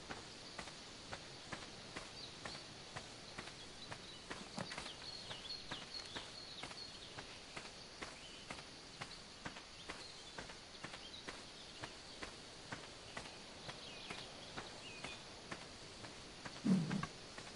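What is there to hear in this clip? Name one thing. Footsteps rustle steadily through leafy undergrowth.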